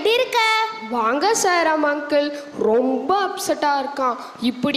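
A young girl speaks through a microphone.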